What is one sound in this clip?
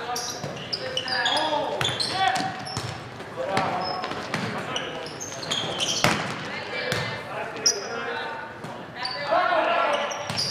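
Sneakers squeak sharply on a gym floor, echoing in a large hall.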